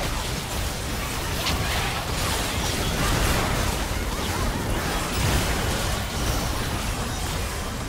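Video game spell effects crackle and burst during a fight.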